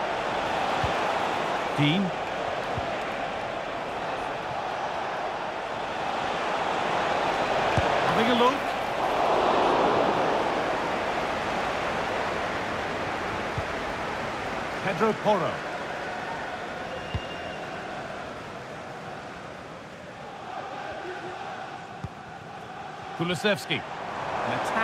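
A stadium crowd roars steadily, swelling and easing.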